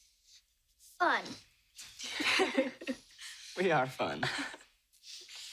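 A teenage girl laughs softly.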